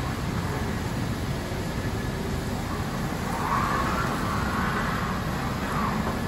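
An electric motor hums steadily as a small lift drives slowly.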